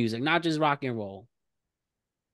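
A young man speaks briefly and calmly, close to a microphone.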